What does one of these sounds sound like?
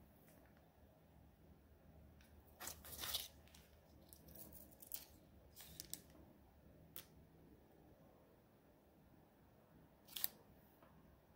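Fingertips tap lightly on a hard surface.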